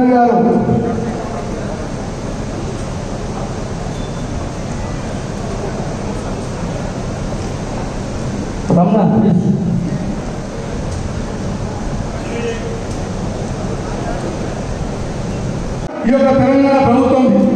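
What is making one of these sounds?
A man speaks loudly through a microphone and loudspeaker, with animation.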